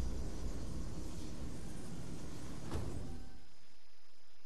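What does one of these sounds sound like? Loud rumbling battle noise with a sharp bang plays, then cuts off abruptly.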